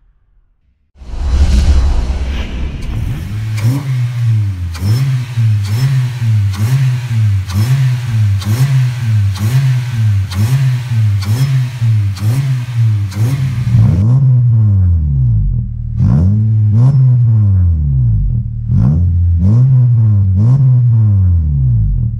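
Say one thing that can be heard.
A car engine revs up and down again and again, loud and close.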